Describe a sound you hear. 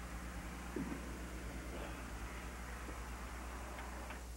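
A man shuffles as he gets up from the floor.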